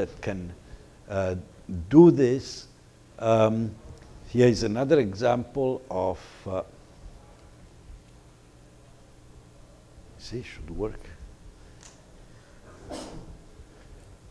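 A man lectures into a microphone, speaking calmly.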